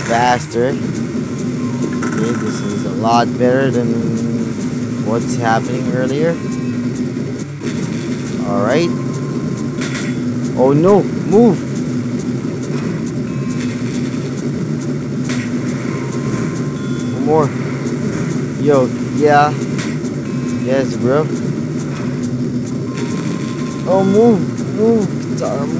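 Bouncy electronic game music plays steadily.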